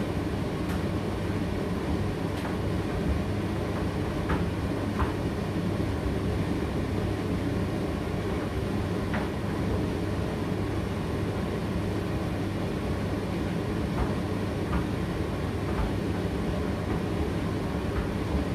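A condenser tumble dryer hums and rumbles as it runs a drying cycle.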